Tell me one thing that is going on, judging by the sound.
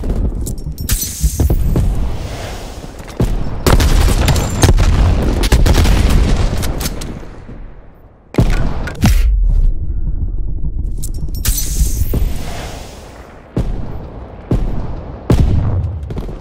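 A rifle fires sharp gunshots in bursts.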